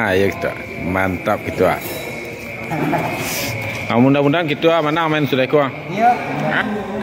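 A middle-aged man talks close by.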